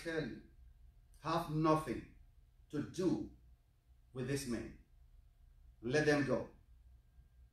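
A man speaks slowly and solemnly in short phrases with pauses between them.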